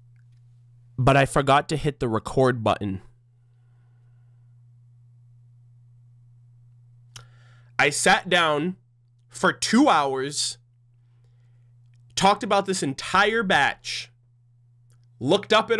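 A young man talks with animation close to a microphone, in short bursts with pauses.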